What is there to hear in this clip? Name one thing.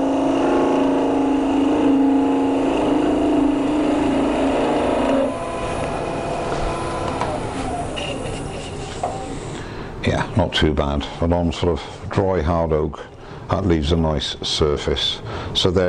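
A wood lathe spins with a steady hum.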